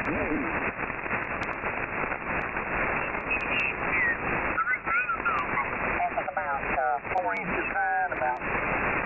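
A radio receiver hisses with steady static.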